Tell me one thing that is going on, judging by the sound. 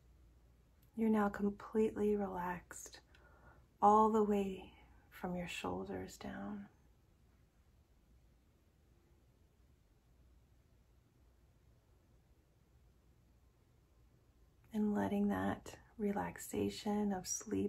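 A young woman speaks calmly and softly close to the microphone, pausing between phrases.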